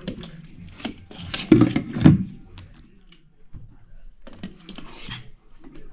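A spoon pours thick sauce onto a plate.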